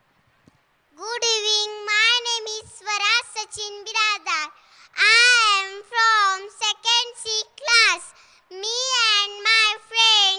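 A young girl sings into a microphone, heard through loudspeakers.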